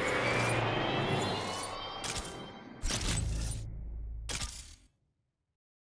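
A car engine roars and revs up.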